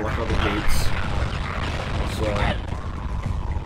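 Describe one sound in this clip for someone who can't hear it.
A magical blast bursts with a loud crackling whoosh.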